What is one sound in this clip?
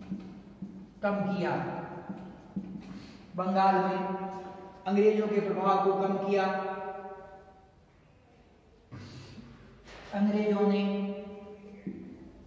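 A man speaks loudly and clearly, as if lecturing.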